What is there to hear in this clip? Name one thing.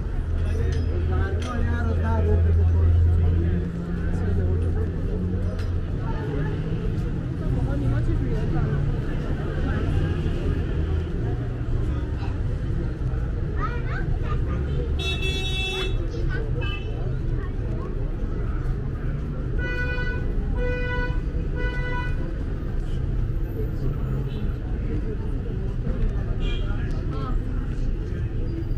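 Traffic rumbles steadily in the distance.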